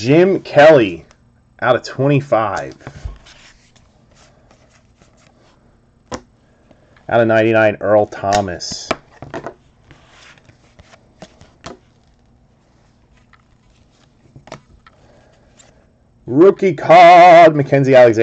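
Trading cards flick and rustle as they are handled.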